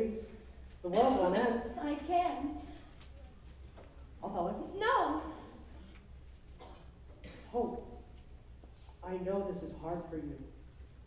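A woman speaks with animation from a distance in a large echoing hall.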